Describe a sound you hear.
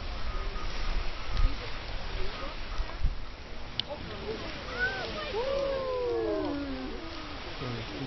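A bonfire crackles and roars.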